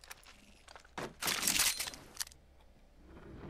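Items are picked up with short metallic clicks.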